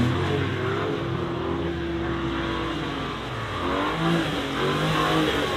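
A car engine revs hard.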